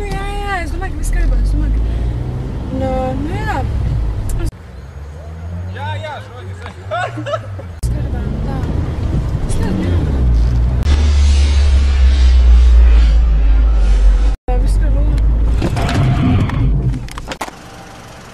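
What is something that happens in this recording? A car engine rumbles low.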